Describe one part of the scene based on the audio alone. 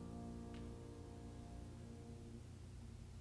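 A piano chord rings out and fades away.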